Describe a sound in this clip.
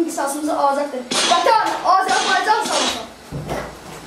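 A young boy recites loudly and with feeling close by.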